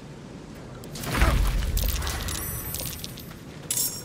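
A magic spell bursts with a deep, rumbling whoosh that slowly fades.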